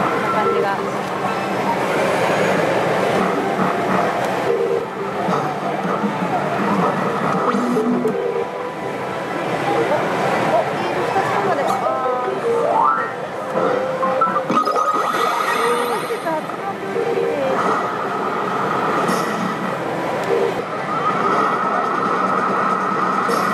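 A slot machine plays loud electronic jingles and beeping tones.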